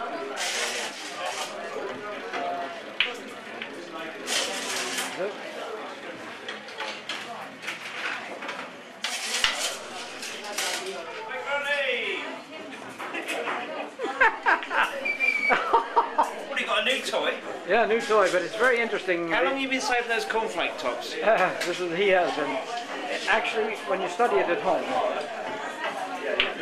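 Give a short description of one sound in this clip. Billiard balls click together and roll on a table.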